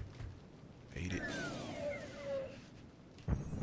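A shimmering magical chime rings out.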